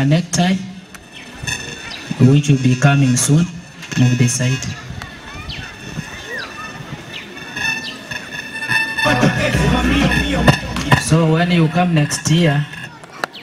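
A man speaks loudly and with animation through a microphone and loudspeaker outdoors.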